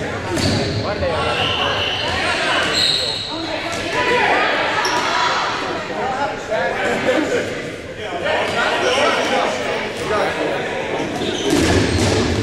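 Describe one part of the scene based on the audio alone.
A crowd of players shouts and chatters loudly in an echoing gym.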